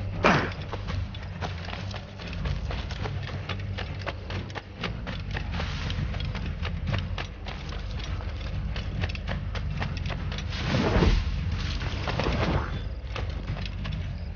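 Leaves and bushes rustle as a figure runs through them.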